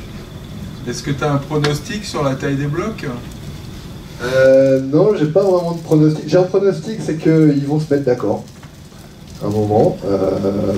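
A man speaks calmly through a microphone over loudspeakers.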